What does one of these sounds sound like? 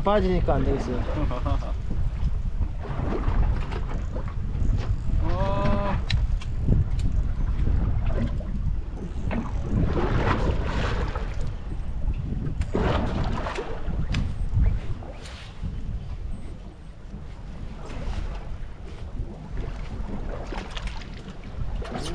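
Wind blows outdoors over open water.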